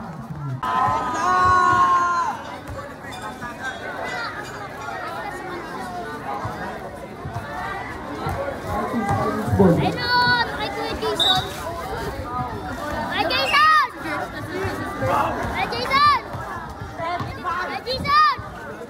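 A basketball thumps as it bounces on concrete.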